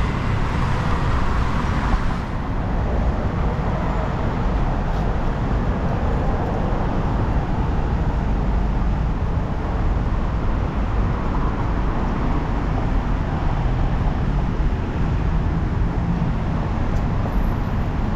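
Traffic rumbles past on a nearby road.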